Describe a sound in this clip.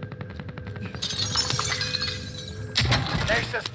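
A wooden chest creaks open with a bright shimmering chime.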